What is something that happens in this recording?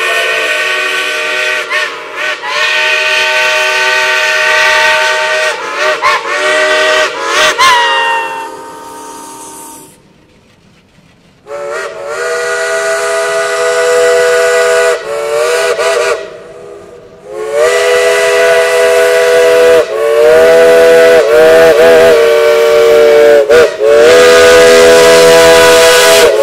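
Steam locomotive whistles blow loudly in long, overlapping blasts.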